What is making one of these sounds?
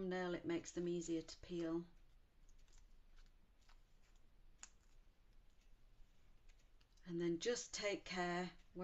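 Paper cards rustle and tap softly as they are handled.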